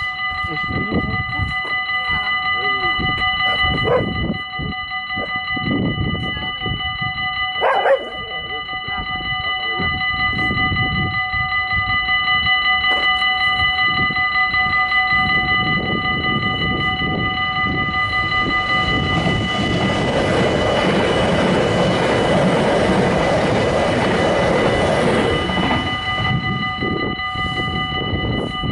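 A level crossing bell rings steadily.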